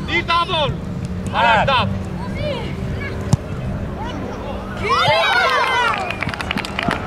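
Young boys shout outdoors across an open field.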